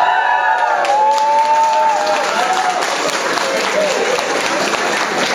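A crowd of young women cheers and whoops loudly in an echoing hall.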